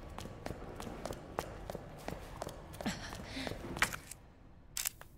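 Footsteps run quickly across a hard floor in a large echoing hall.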